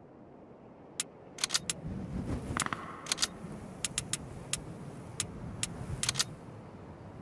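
Menu selection clicks tick several times.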